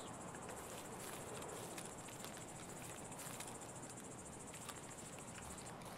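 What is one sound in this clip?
Branches rustle as they brush past.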